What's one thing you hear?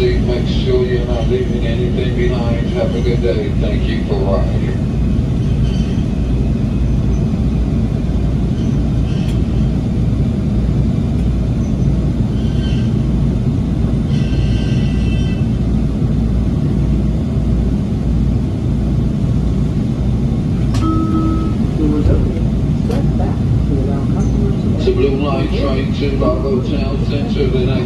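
A subway train rumbles steadily as it moves through a station.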